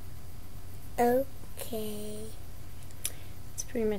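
A young girl speaks briefly and excitedly close by.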